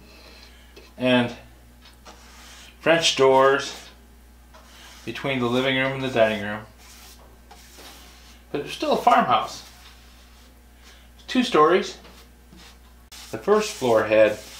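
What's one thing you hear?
A middle-aged man talks calmly and close by, in short phrases with pauses.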